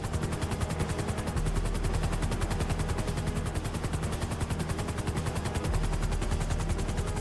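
A helicopter engine roars steadily.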